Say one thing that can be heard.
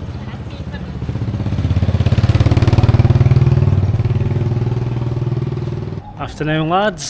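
A motor scooter engine rumbles past.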